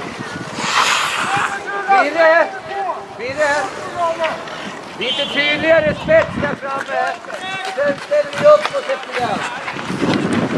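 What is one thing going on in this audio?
Young men shout and call out across an open outdoor rink.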